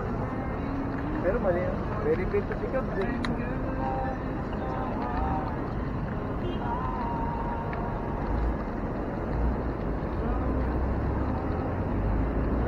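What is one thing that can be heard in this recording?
Bicycle tyres hum along a paved road.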